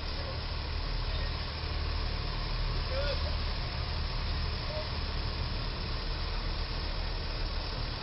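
A box truck engine rumbles as it moves slowly forward.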